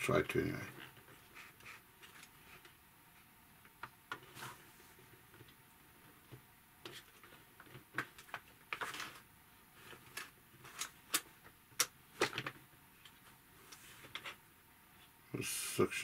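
Plastic levers click and creak as they are pushed and pulled.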